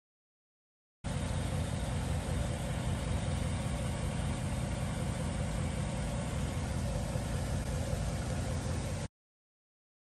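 A car engine idles steadily outdoors.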